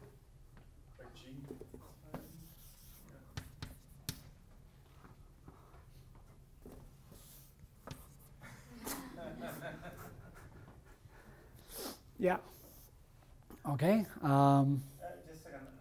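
A man lectures calmly in a room with some echo.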